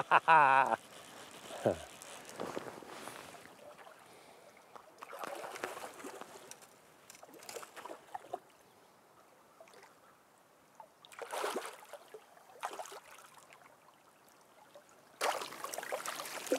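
A river flows and gurgles softly.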